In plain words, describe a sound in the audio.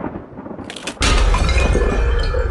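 Glass cracks and shatters.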